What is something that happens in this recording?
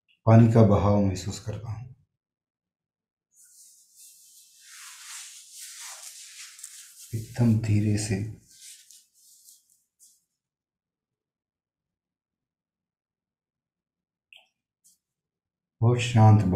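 A man speaks calmly and slowly close to a microphone.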